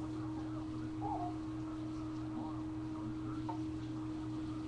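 A baby makes small fussing sounds close by.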